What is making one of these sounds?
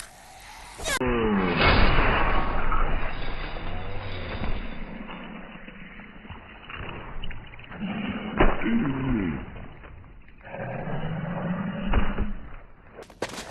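A zombie growls and snarls nearby.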